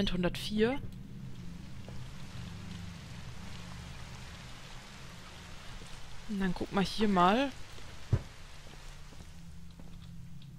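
Rain falls steadily outside.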